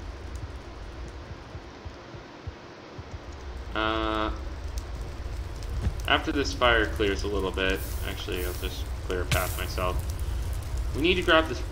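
Fire crackles and burns.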